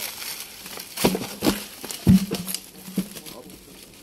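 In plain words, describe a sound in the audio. A heavy log thuds and scrapes as men roll it over the ground.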